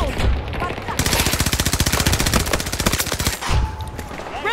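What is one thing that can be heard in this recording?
A rifle fires in a rapid burst of shots.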